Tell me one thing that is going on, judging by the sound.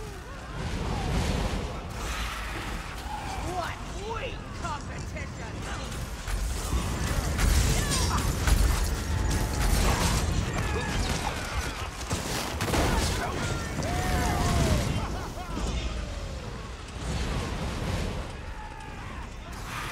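Fireballs explode with a dull boom.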